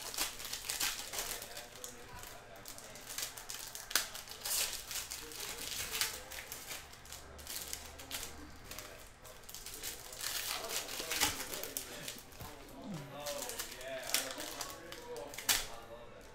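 Foil wrappers crinkle and rustle.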